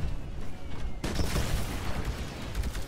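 A heavy cannon fires in loud bursts.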